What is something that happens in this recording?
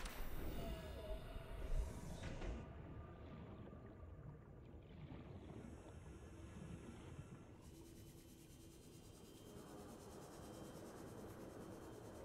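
A deep underwater rumble drones steadily.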